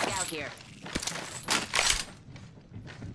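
A rifle clacks and rattles as it is handled.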